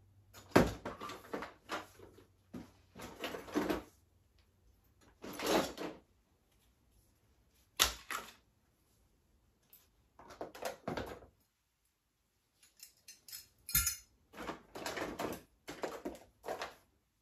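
Toys and plastic items rustle and clatter as they are sorted.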